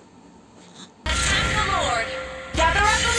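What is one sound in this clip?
Game magic effects whoosh and chime.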